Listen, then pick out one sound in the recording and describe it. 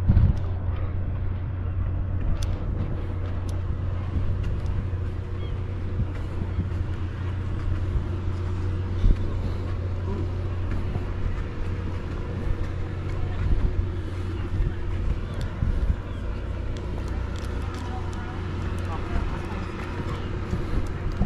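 Wind blows steadily across an open harbour outdoors.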